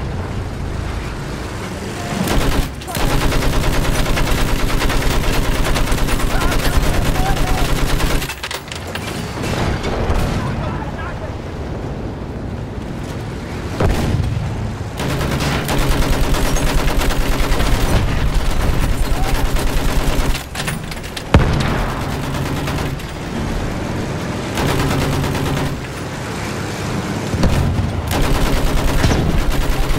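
A heavy engine rumbles steadily.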